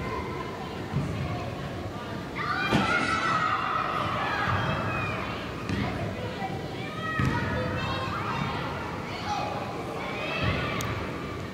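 A ball is kicked with a thud.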